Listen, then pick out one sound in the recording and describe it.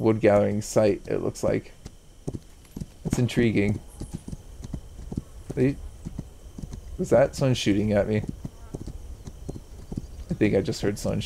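Horse hooves thud steadily on dry ground.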